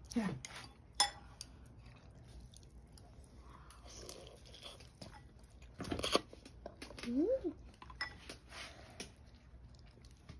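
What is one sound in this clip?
A fork clinks against a bowl.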